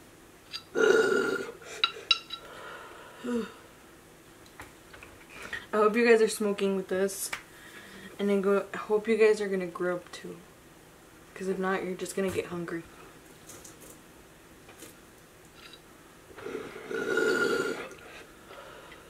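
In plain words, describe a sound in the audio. Water bubbles through a glass bong as someone inhales.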